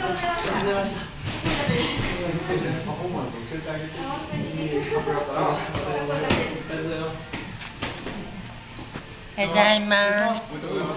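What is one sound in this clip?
A man talks nearby in an echoing room.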